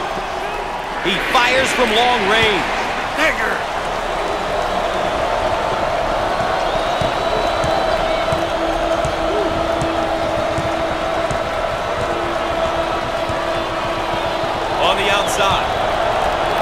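Basketball shoes squeak sharply on a hardwood court.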